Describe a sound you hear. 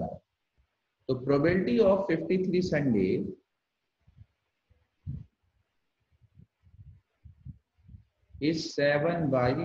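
A man explains calmly over a microphone in an online call, pausing between phrases.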